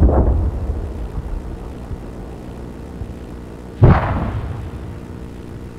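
A rocket roars as it streaks into the sky.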